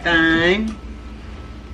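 A woman speaks briefly up close.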